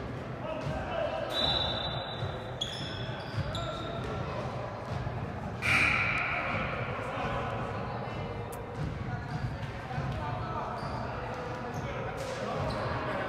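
Sneakers squeak sharply on a hard court floor in an echoing hall.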